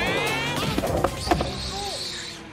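A skateboard clatters as it crashes to the floor.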